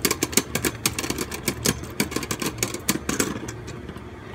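Spinning tops clash and click rapidly against each other in a plastic arena.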